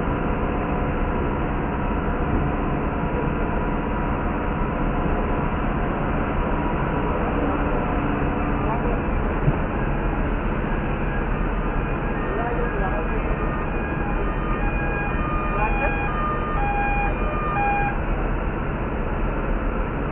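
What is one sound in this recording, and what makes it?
Fire truck engines idle nearby with a steady low rumble.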